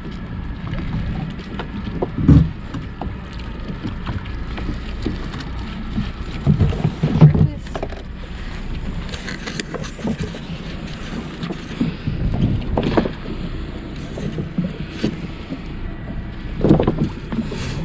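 A wet net slaps and rustles as it is pulled aboard.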